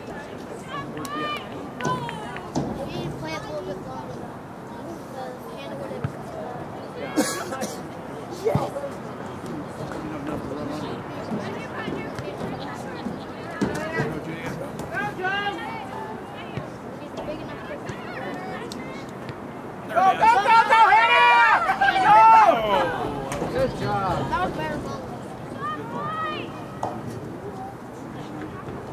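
Young women shout to each other outdoors.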